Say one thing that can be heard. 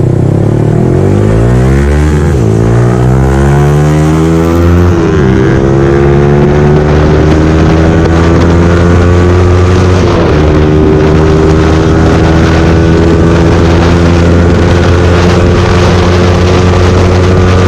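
A motorcycle engine revs up and climbs through the gears, rising in pitch between shifts.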